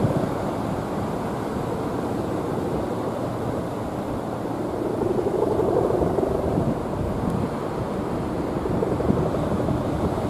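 Kite hummers buzz and drone in the wind.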